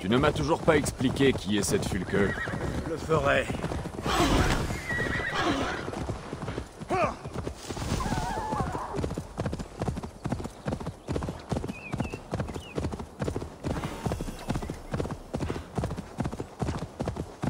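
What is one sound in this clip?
A horse's hooves thud steadily on soft ground at a trot.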